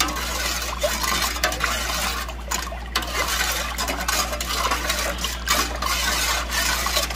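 Water bubbles and boils in a pot.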